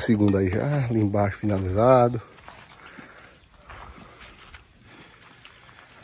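A trowel taps and scrapes on bricks.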